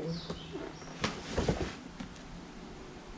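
A sheet of card rustles and taps as it is handled.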